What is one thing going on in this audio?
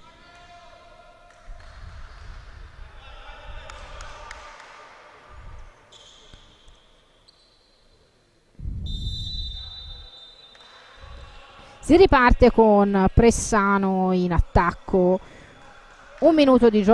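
A ball bounces on a hard court floor.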